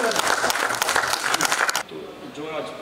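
People clap their hands loudly.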